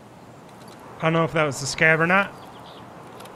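An adult man speaks briefly, close into a headset microphone.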